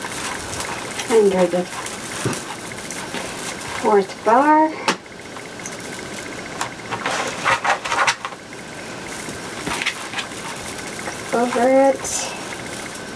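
A woman speaks calmly in short bursts close by.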